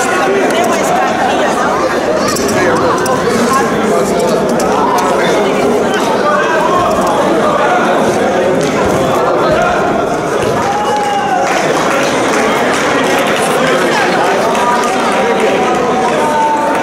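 A crowd of young people chatters and cheers in a large echoing hall.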